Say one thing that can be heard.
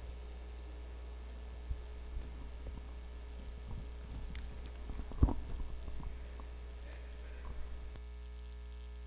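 A woman speaks quietly into a microphone.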